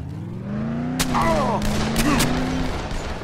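A car crashes with a loud bang.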